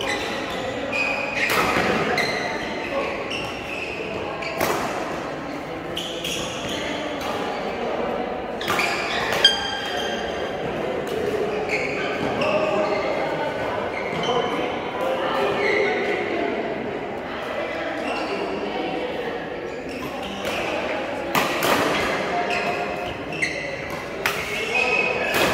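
Rackets strike shuttlecocks with sharp pops in a large echoing hall.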